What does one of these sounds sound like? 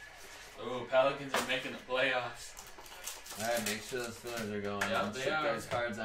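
A foil wrapper crinkles and tears as a card pack is opened.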